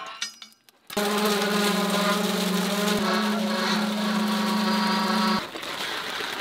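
Wet concrete pours and splatters onto steel bars.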